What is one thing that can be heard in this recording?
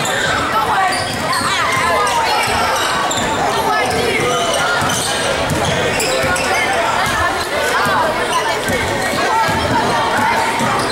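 Sneakers squeak sharply on a gym floor in a large echoing hall.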